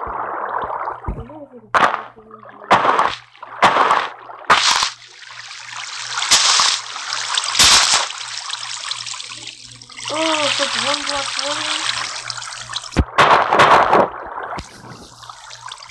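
Game blocks are placed with short, soft thuds.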